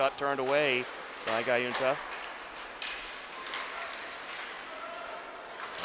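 Skates scrape and swish across ice.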